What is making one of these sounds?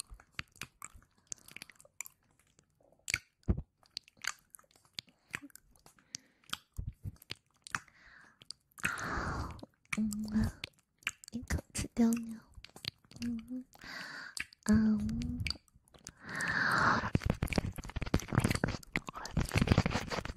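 Soft mouth clicks and taps crackle close to a microphone.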